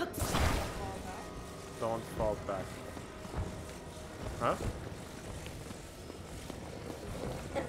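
A soft electronic hum drones while a hovering object is carried through the air.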